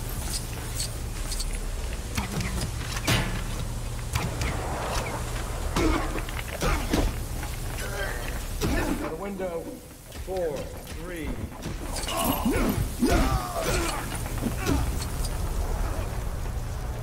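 Blows land with sharp, quick thuds in a fight.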